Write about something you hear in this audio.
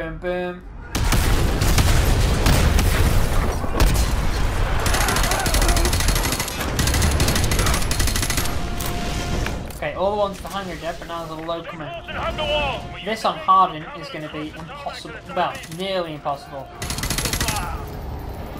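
Rifle gunfire crackles in rapid bursts.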